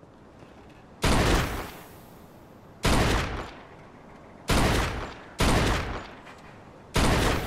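A pistol fires several shots in quick bursts.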